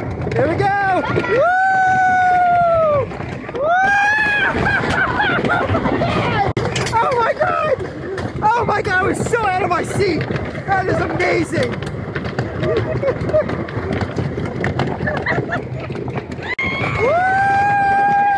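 Young women scream with excitement close by.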